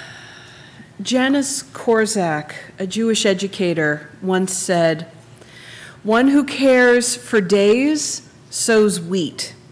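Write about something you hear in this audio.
A second woman speaks calmly into a microphone in an echoing hall.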